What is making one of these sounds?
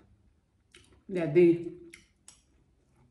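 A woman slurps food from a spoon close by.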